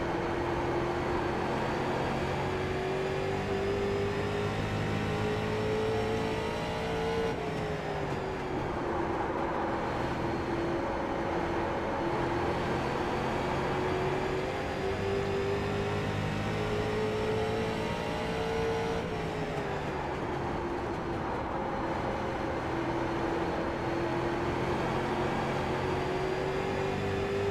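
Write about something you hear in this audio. A race car engine drones loudly from close by, rising in pitch, then dropping and rising again.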